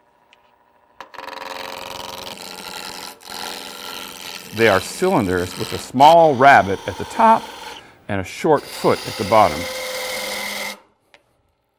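A lathe whirs steadily.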